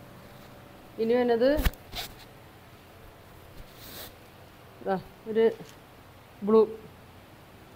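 A woman speaks in short phrases, close by.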